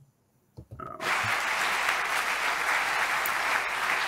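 A large crowd applauds in a big hall.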